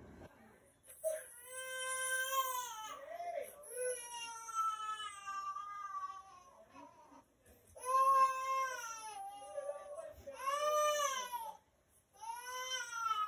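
A woman's voice sings or wails in high, drawn-out notes close by.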